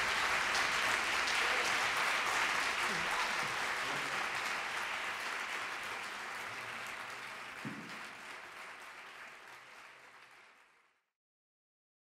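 Applause from an audience rings out in a hall and slowly fades away.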